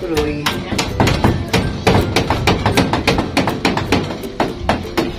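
A hammer taps rapidly on wood and wire mesh.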